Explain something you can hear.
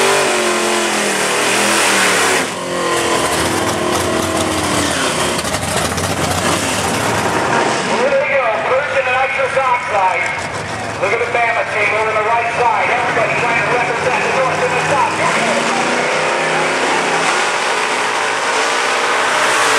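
A race car engine revs loudly.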